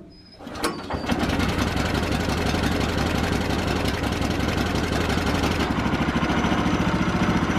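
A small engine starts and runs with a loud, steady roar.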